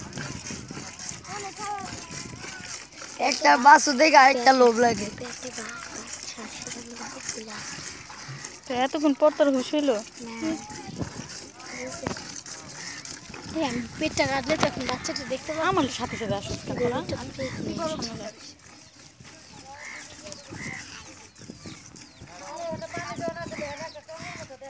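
A man milks a cow, the milk squirting into a metal pail.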